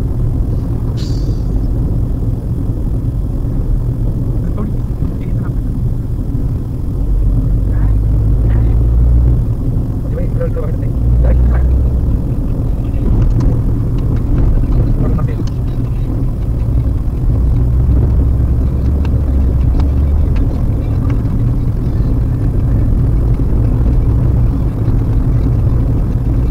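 Wind rumbles against a moving car.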